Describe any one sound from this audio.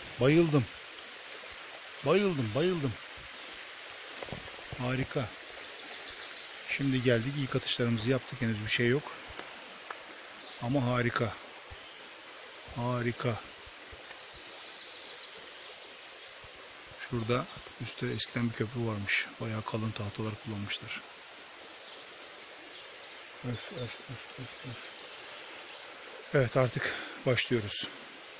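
A shallow stream trickles softly over stones.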